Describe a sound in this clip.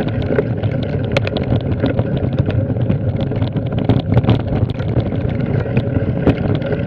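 Bicycle tyres roll and crunch over a dirt track.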